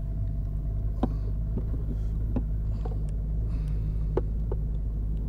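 Items clink and knock in a boat.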